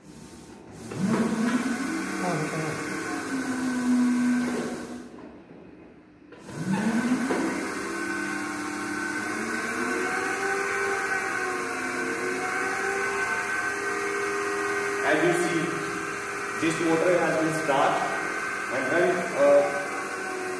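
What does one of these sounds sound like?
An electric motor whirs up to speed and hums steadily.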